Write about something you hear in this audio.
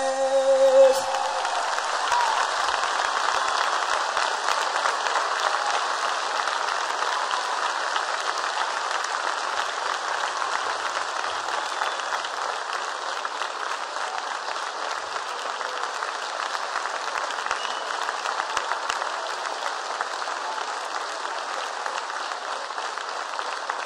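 A large audience applauds and cheers loudly.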